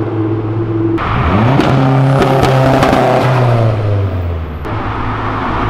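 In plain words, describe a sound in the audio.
A car engine revs up and roars as the car pulls away.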